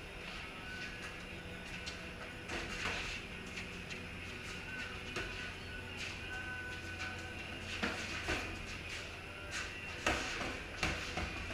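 Boxing gloves thump against pads in sharp bursts, echoing in a bare room.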